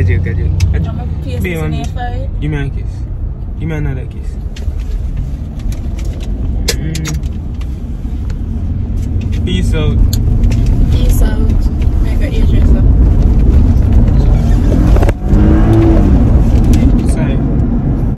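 A young woman talks and laughs close by.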